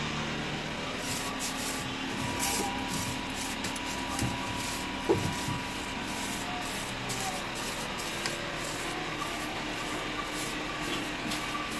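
A broom sweeps across a hard floor.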